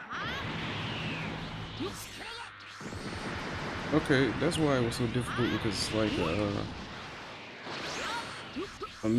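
Energy blasts whoosh and crackle rapidly.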